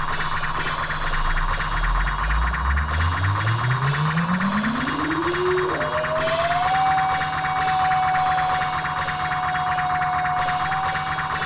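A deep synthesizer tone slowly rises in pitch, then holds a steady note.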